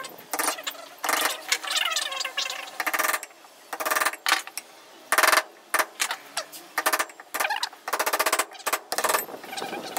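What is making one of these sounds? A chisel scrapes and knocks against wood.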